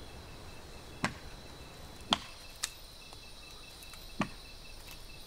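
Plant stems snap sharply a few times.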